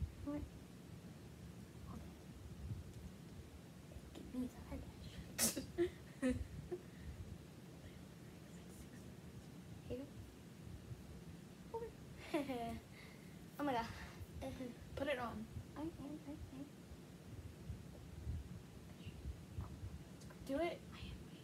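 Two young girls talk quietly and playfully, close by.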